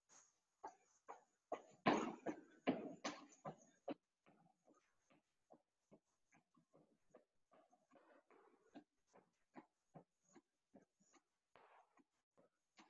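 Feet step up and down on a wooden box with steady thuds.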